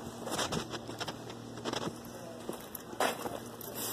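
Footsteps crunch on sand.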